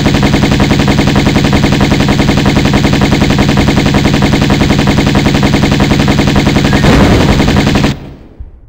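Pistols fire in a rapid, steady stream of shots, then stop abruptly.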